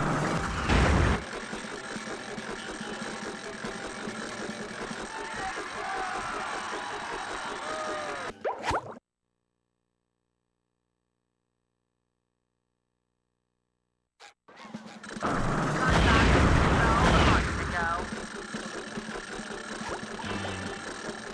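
Upbeat video game music plays.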